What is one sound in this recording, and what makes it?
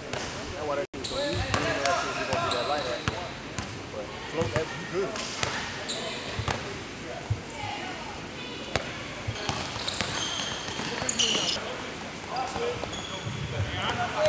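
Men talk and call out nearby in an echoing hall.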